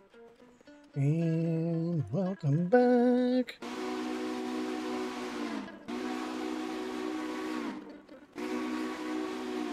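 A steam locomotive whistle blows in long, loud blasts.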